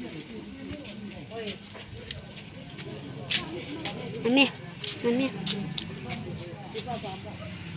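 Several people chatter in the background outdoors.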